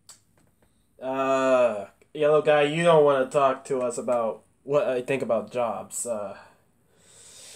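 A man speaks in a deep, animated voice.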